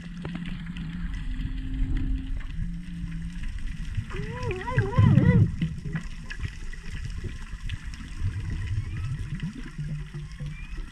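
Water rumbles and crackles softly underwater.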